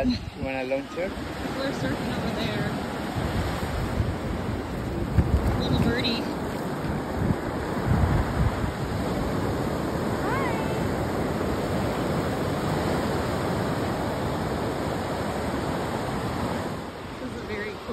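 Waves wash onto the shore with a steady rushing.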